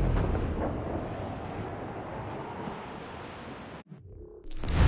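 Waves rush along the hull of a sailing ship on open sea.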